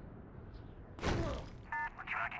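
A heavy thud sounds as a body lands on the ground.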